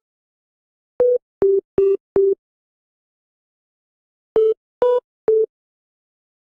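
Phone keypad tones beep as a number is dialed.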